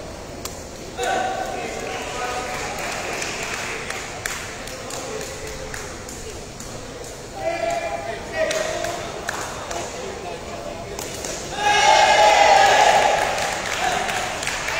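Young men shout to each other across the court.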